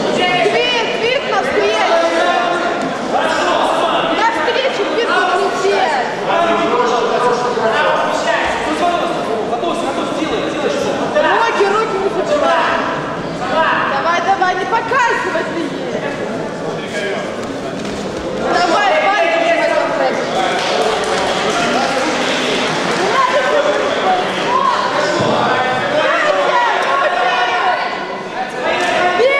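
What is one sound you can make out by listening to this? Men shout and call out nearby in an echoing hall.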